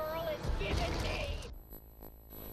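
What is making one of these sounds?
A large crowd cheers and shouts through a crackling, distorted recording.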